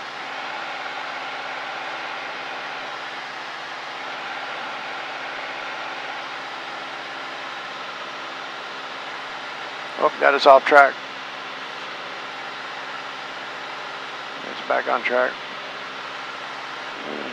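A small plane's engine drones steadily from inside the cabin.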